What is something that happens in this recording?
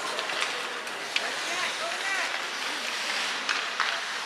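Ice skates scrape across an ice rink.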